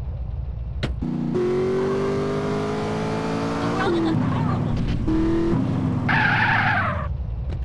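A car engine starts and revs loudly.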